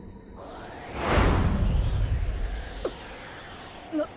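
Wind rushes past loudly and then fades.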